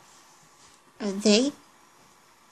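A young girl speaks briefly close by.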